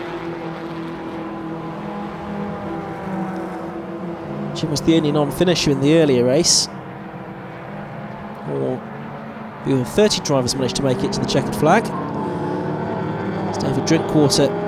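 Racing car engines roar past, revving up and down.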